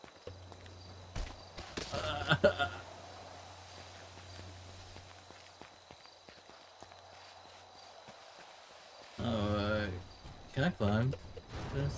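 Footsteps run quickly over snowy ground.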